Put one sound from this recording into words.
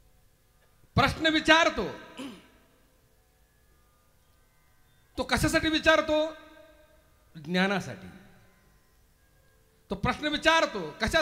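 A middle-aged man speaks with animation through a microphone, in short bursts.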